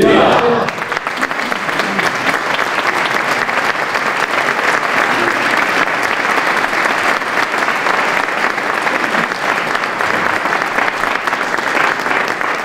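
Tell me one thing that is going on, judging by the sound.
People applaud steadily in an echoing hall.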